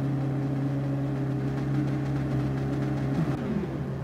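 A racing car engine hums steadily at idle.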